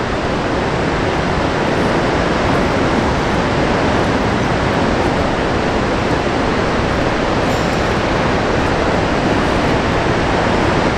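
Water from a dam's spillways roars steadily nearby.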